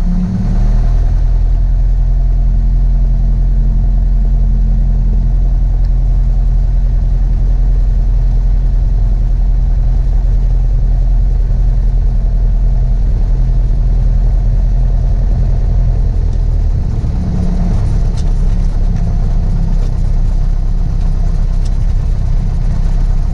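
A small propeller plane's engine drones loudly and steadily close by.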